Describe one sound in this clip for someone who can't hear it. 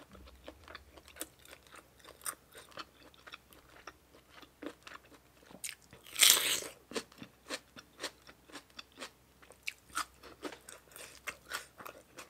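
Onion skins crackle and snap between fingers.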